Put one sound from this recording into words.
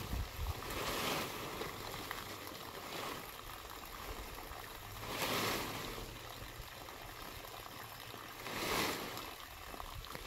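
Palm leaves rustle and scrape as they are laid on a thatched roof.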